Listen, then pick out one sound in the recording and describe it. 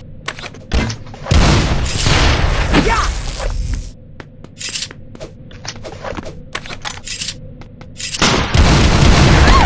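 Gunshots crack in short, quick bursts.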